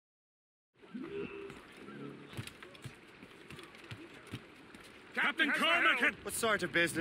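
Boots thud on a wooden deck as a man runs.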